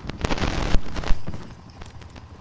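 An explosion roars with crackling fire.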